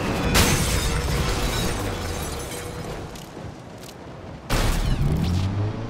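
A car crashes and tumbles with loud metal impacts.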